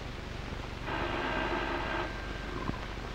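A telephone rings briefly.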